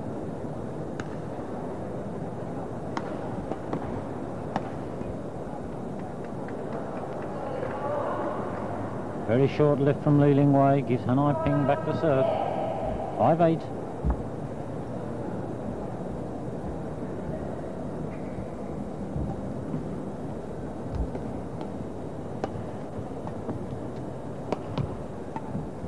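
Rackets strike a shuttlecock with sharp, light pops.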